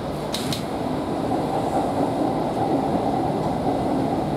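An oncoming train rushes past close by.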